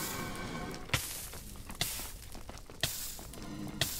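Lava bubbles and pops nearby.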